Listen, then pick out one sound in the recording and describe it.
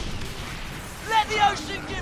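Cannons boom in a loud blast.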